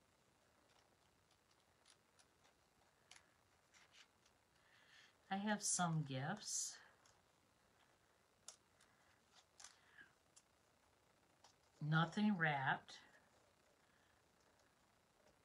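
Paper rustles and crinkles softly.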